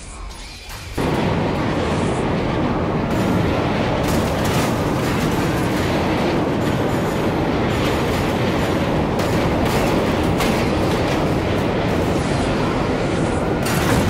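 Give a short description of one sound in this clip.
An airliner crashes and breaks apart with loud, crunching rumbling and clattering debris.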